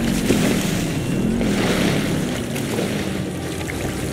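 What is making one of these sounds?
Water splashes in a pool.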